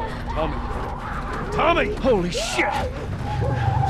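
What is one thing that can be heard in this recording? A young girl shouts in alarm.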